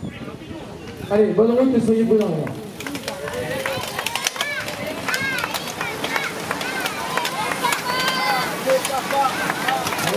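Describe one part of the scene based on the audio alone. Spectators cheer and call out close by.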